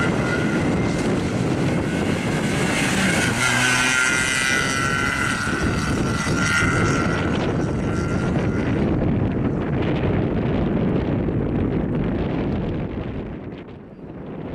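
A car engine revs hard as the car speeds past.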